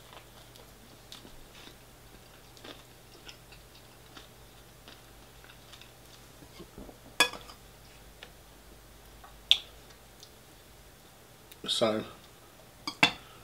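A man chews food with soft, wet mouth sounds.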